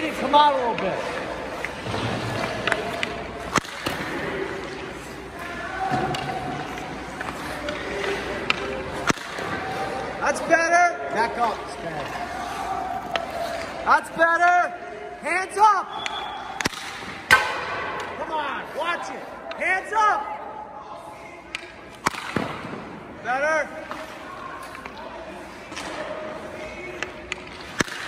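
Skate blades scrape across ice.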